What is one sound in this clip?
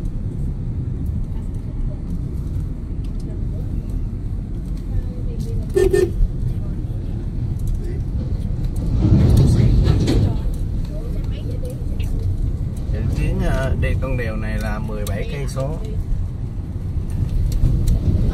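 A car engine rumbles steadily while driving along a road.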